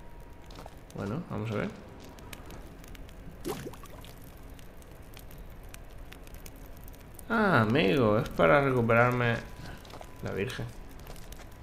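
A torch flame crackles softly close by.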